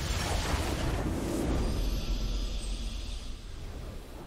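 A triumphant game victory sound swells and then fades.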